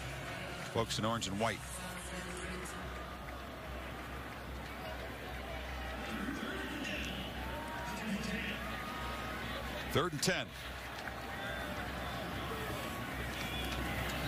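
Football players shout calls before the snap, heard from afar in a large open stadium.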